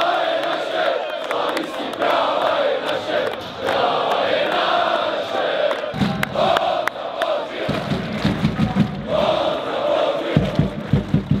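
Men clap their hands in rhythm.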